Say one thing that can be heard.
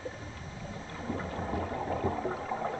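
Air bubbles gurgle from a diver's breathing regulator.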